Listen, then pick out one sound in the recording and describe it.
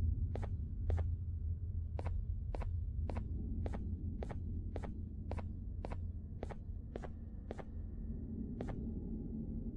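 Footsteps thud at a steady walking pace on a hard floor.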